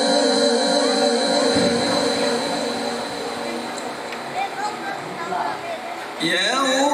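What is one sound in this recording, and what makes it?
A man chants in a drawn-out, melodic voice through a microphone and loudspeaker, with echo.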